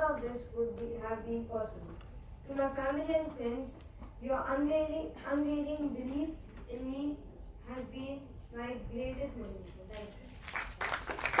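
A young boy reads out loud.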